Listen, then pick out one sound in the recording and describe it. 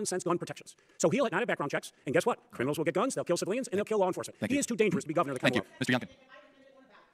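A middle-aged man speaks forcefully into a microphone.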